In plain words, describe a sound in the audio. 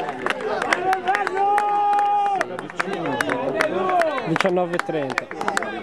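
Young men cheer and shout close by.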